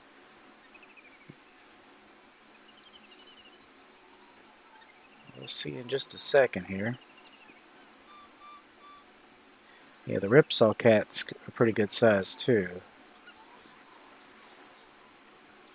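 A fishing reel clicks softly as a line is wound in.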